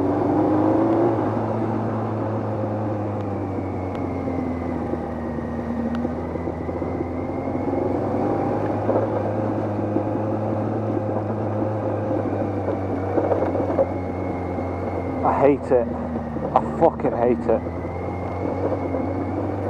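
Wind buffets past the rider outdoors.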